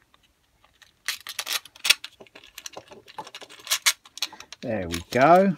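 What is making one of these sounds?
Small metal and plastic parts click and rattle as hands handle them.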